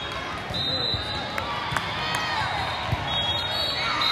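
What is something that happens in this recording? A volleyball thuds as a player hits it.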